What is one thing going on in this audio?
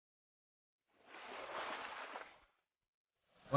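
Water splashes as a fishing float is pulled under.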